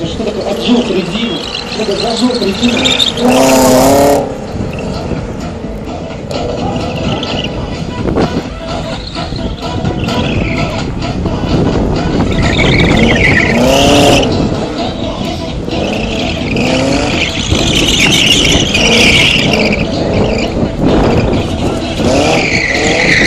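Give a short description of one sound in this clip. Tyres squeal loudly on pavement.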